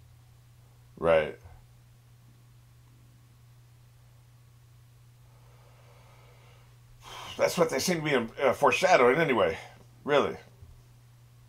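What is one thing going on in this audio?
An older man speaks with animation, close to a microphone.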